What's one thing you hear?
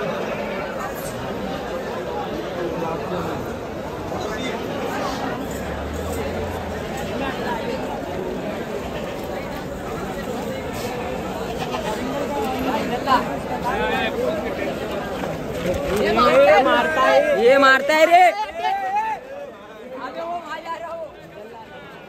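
A crowd of people chatters loudly all around, outdoors.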